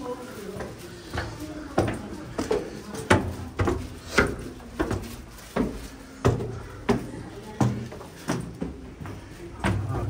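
Footsteps tap on stone stairs.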